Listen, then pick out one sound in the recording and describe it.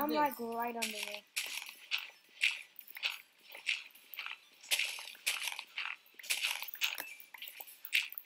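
Dirt crunches in quick, repeated bursts as a shovel digs.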